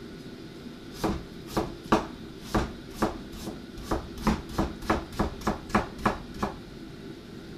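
A knife chops on a cutting board with quick, steady knocks.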